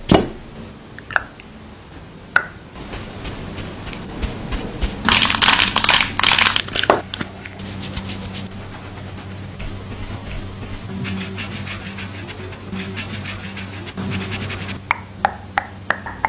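A brush sweeps softly across skin close to a microphone.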